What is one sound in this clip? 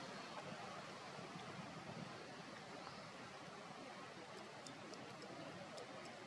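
A monkey chews and nibbles on corn up close.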